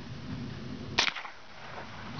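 A rifle fires a single shot outdoors.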